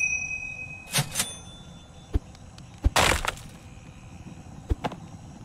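Short video game sound effects chime and thump.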